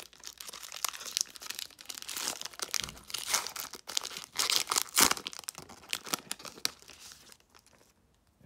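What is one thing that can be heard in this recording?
A foil wrapper crinkles and tears as hands rip it open.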